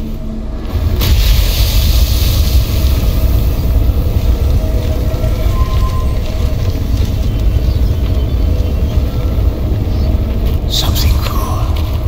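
Sparks crackle and hiss.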